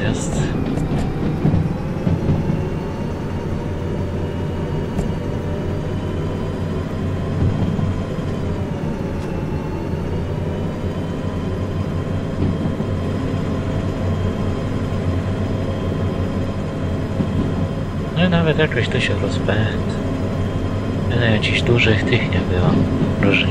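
Train wheels rumble over the rails.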